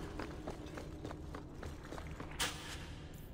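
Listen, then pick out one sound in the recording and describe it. Footsteps tread steadily on a stone floor.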